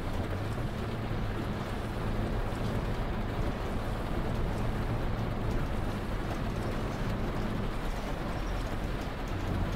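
Windshield wipers sweep back and forth.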